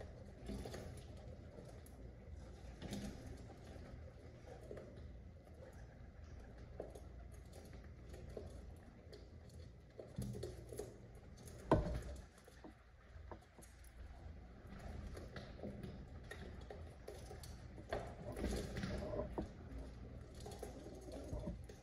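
Pigeons peck and tap against a window pane.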